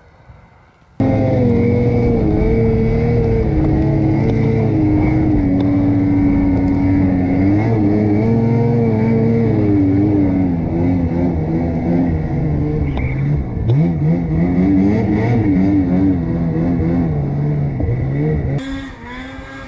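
Snow hisses and crunches under the snowmobile's track.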